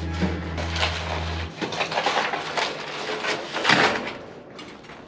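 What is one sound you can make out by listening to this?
A metal roof sheet flexes and rattles.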